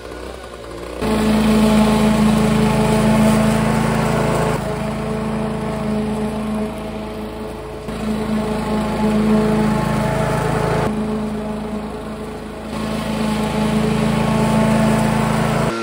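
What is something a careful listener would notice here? A lawn mower engine roars steadily close by, rising and falling as it moves.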